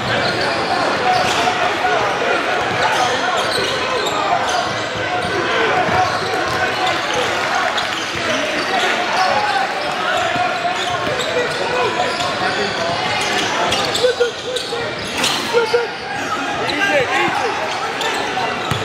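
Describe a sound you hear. A crowd of spectators chatters in a large echoing gym.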